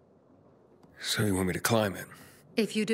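A man asks a short question in a low voice.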